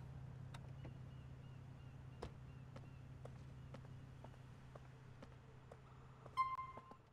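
Footsteps tap on pavement at a steady walking pace.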